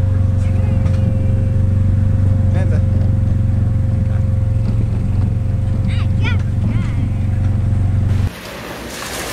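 A car engine hums steadily up close.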